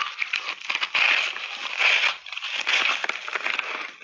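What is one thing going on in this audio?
A woman bites into a chunk of ice.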